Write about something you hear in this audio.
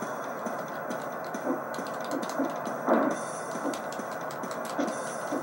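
A video game plays through a small television speaker.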